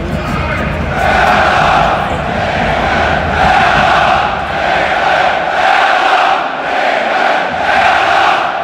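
A large crowd of football supporters chants in unison in a roofed stadium.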